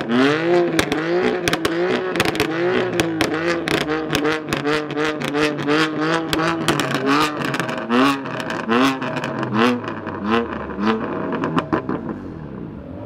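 A sports car engine revs hard over and over.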